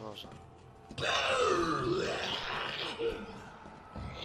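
A zombie groans loudly.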